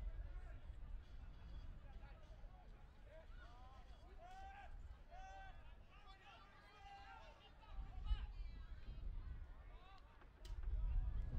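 Men shout and call out across an open field in the distance.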